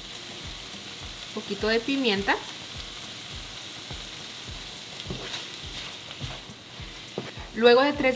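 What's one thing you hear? Food sizzles softly in a pan.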